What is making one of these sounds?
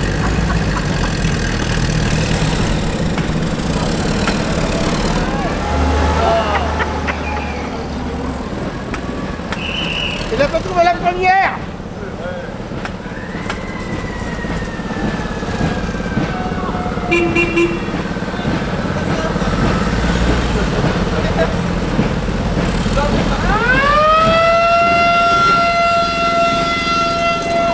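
Old jeep engines rumble and putter close by.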